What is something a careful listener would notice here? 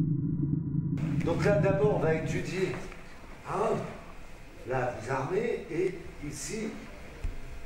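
An elderly man speaks calmly in a large echoing hall.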